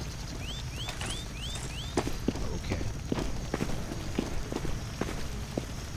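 Footsteps tread on a stone path.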